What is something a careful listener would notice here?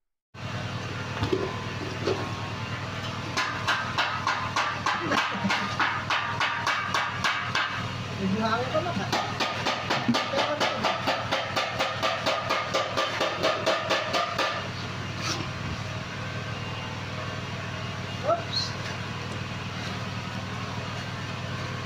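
A trowel scrapes and scoops wet mortar.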